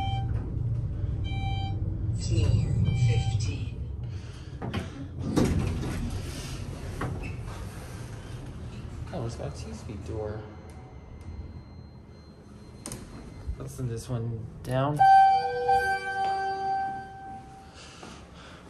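An elevator chime beeps.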